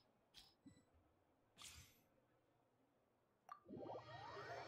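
Soft game menu clicks sound a few times.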